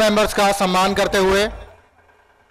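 A man shouts loudly through a loudspeaker.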